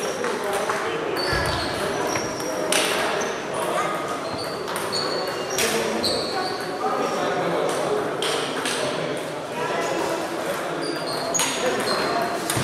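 Table tennis balls click rapidly against paddles and tables in a large echoing hall.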